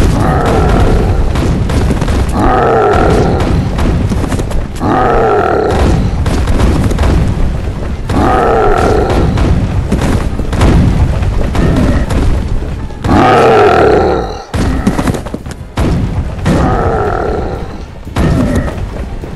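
Weapons clash and thud repeatedly in a fast battle.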